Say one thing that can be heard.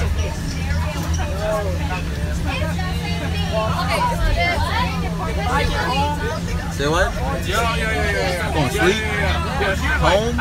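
A bus engine hums steadily at low pitch.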